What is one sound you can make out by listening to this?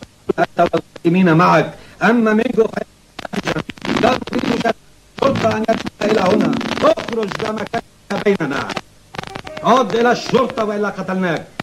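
A man speaks angrily and loudly.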